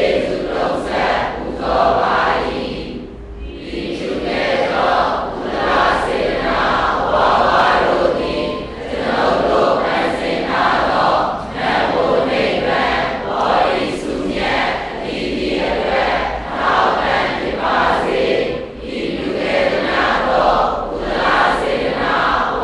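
A large crowd of men and women chants together in unison, echoing in a large hall.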